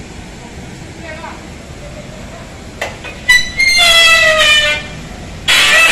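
A forklift engine runs as the forklift drives along.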